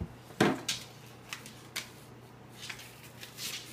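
A small packet crinkles and rustles on the floor.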